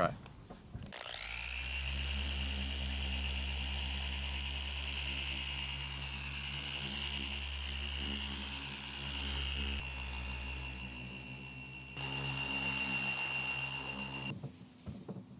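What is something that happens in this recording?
An electric polisher whirs with a steady hum.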